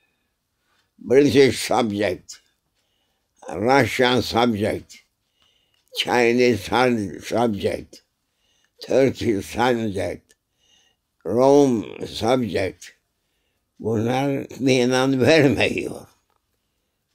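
An elderly man speaks slowly and calmly, close to a microphone, in short phrases with pauses.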